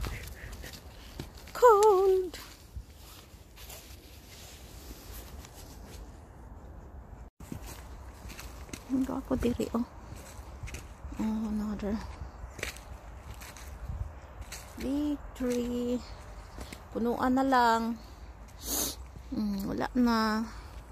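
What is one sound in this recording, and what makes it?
Footsteps crunch on frosty ground.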